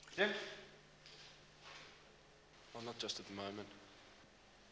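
A man speaks calmly in a quiet room.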